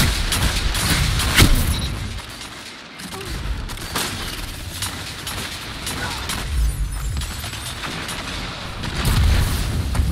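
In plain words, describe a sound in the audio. Loud blasts boom.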